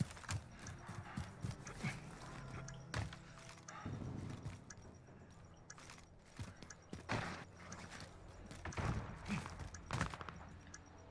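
Footsteps thud quickly across hard floors.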